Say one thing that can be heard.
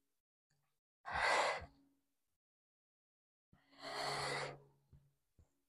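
A young woman breathes out hard while exercising.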